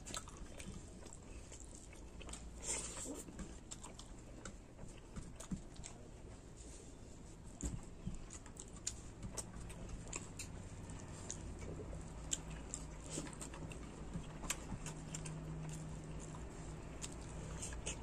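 A man chews food noisily with his mouth open.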